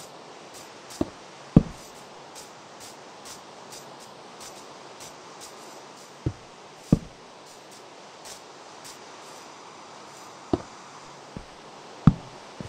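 Stone blocks thud softly as they are set down, a few at a time.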